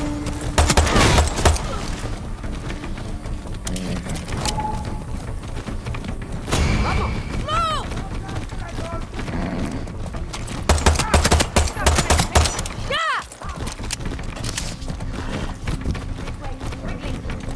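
A horse's hooves thud steadily on a dirt road.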